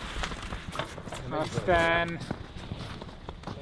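A ski bike's runners scrape over snow.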